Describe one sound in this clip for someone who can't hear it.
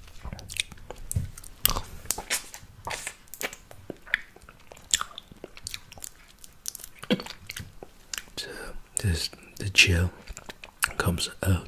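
A man makes soft, wet mouth sounds close to a microphone.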